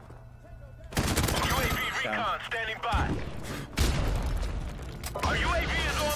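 A machine gun fires loud rapid bursts.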